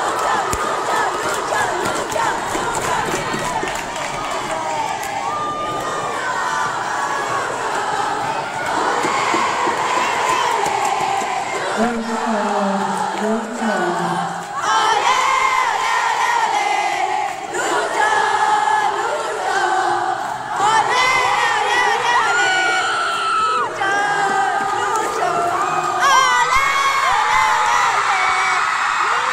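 Loud pop music plays through loudspeakers in a large hall.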